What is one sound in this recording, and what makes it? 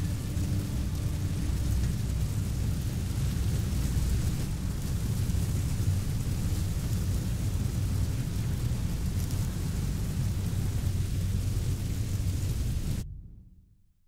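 A low, steady ship engine hum drones and then cuts off abruptly.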